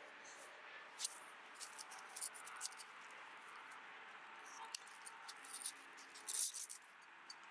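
Metal clinks softly a few times.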